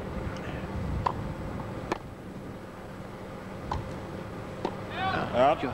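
A tennis ball is hit sharply with a racket.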